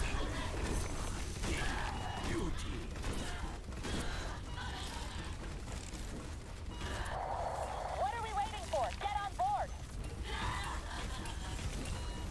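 Guns fire in rapid bursts with loud electronic blasts.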